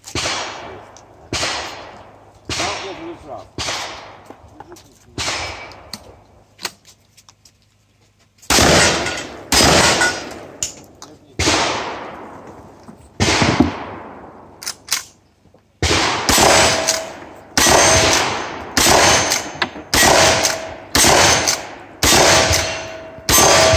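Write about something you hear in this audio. Guns fire shot after shot outdoors, each bang echoing briefly.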